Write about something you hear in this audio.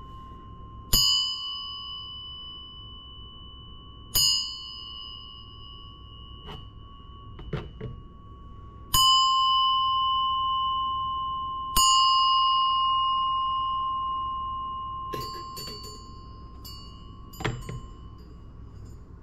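A small brass bell is struck several times and rings with a clear, slowly fading tone.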